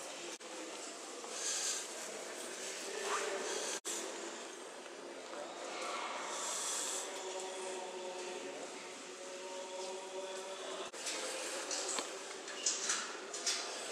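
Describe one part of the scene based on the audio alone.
Visitors' voices murmur in a large echoing hall.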